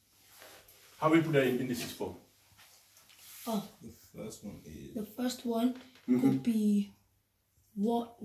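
A man speaks calmly, as if explaining, close by.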